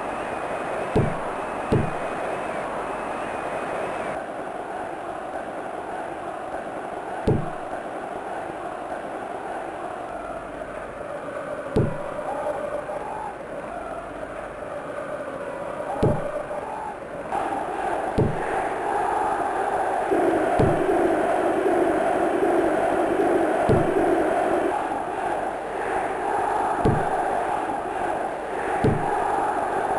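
A 16-bit video game football is kicked with short, dull thumps.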